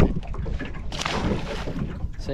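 Water splashes as a fish is dropped in.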